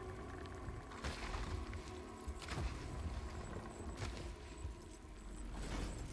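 A mechanical claw whirs and clanks.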